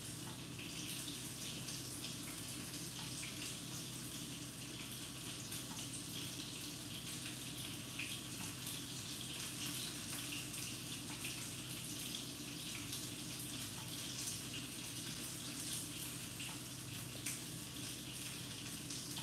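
Paper crinkles softly as it is rolled between fingers.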